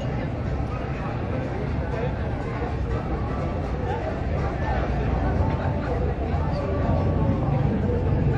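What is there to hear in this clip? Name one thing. A crowd of diners chats at outdoor tables.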